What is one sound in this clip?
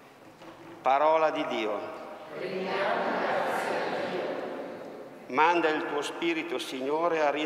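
A man reads out through a microphone in an echoing hall.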